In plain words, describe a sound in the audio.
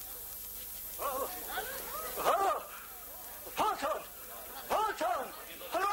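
An elderly man speaks excitedly.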